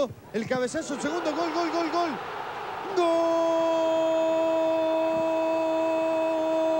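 A large stadium crowd roars in cheering.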